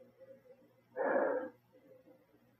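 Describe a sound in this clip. A man slurps a sip of wine.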